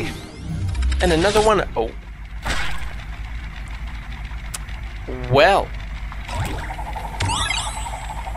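Electronic game sound effects chime and whoosh.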